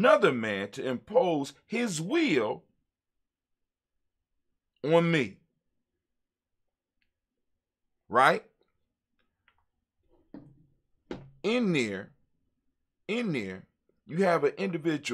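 An elderly man speaks with animation into a close microphone, with pauses between phrases.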